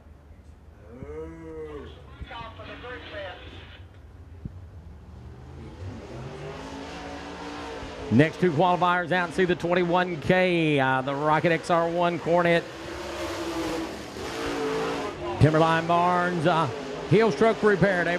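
A race car engine revs loudly, rising and falling in pitch as the car speeds around a dirt track.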